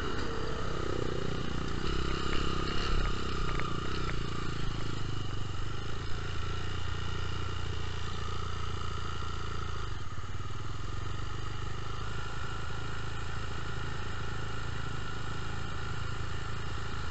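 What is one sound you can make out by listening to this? A dirt bike engine revs and idles up close.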